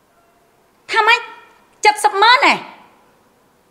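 A woman speaks sharply and angrily nearby.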